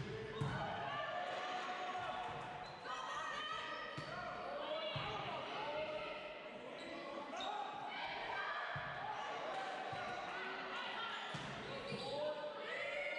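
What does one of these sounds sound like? A volleyball is struck with sharp smacks in a large echoing hall.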